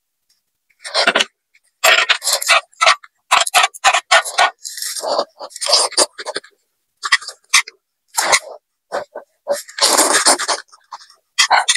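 A young woman slurps noodles loudly, close to the microphone.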